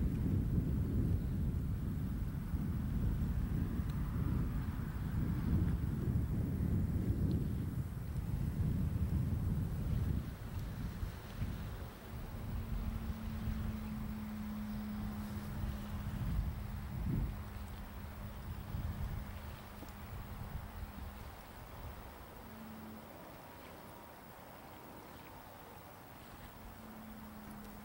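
Wind gusts and rumbles loudly outdoors, then eases.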